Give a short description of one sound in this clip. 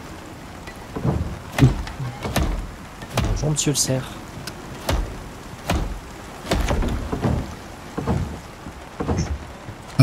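A hammer knocks on wood again and again.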